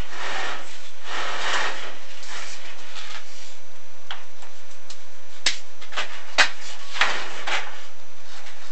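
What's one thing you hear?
A probe scrapes along the inside of a pipe.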